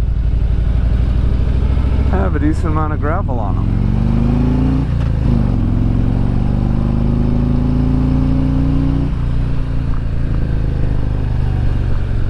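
A motorcycle engine hums, rising in pitch as it speeds up and dropping at each gear change.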